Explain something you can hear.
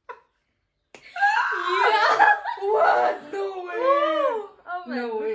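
A young woman squeals and shrieks with delight close by.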